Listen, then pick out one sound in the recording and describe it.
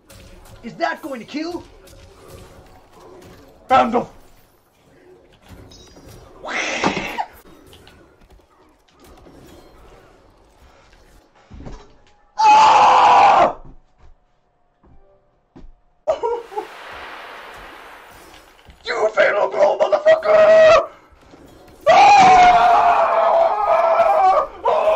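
A young man shouts excitedly into a microphone.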